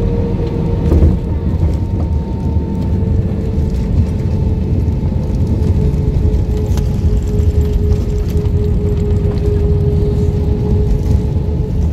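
Tyres rumble along the runway as the airliner rolls.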